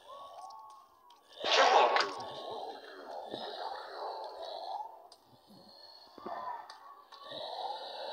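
Heavy blunt blows thud and splatter in a video game.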